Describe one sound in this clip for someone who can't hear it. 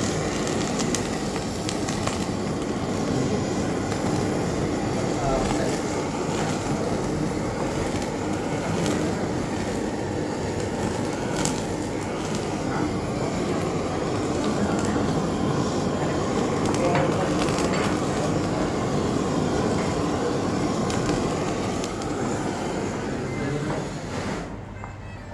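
A gas torch roars steadily.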